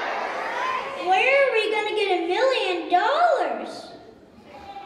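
A young child speaks with animation into a microphone, heard over loudspeakers in a large hall.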